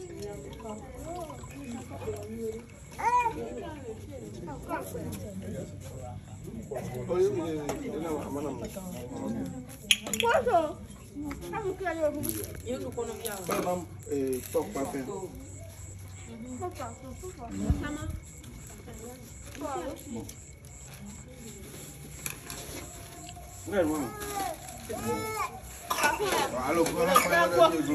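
A group of men and women talk nearby.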